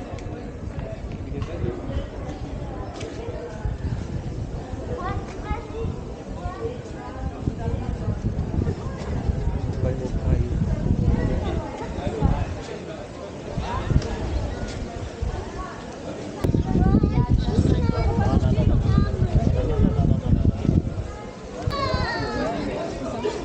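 Outdoors, wind rumbles against a microphone.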